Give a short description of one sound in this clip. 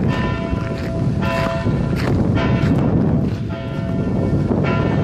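Bells ring loudly from a tower overhead, each strike ringing on.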